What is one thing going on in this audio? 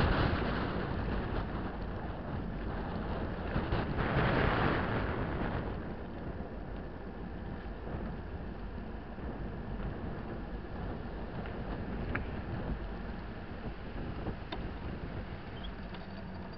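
Wind rushes and rumbles steadily past while moving along a road.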